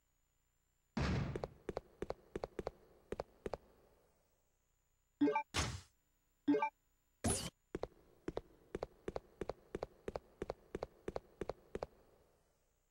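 Footsteps tap quickly along a hard floor in an echoing corridor.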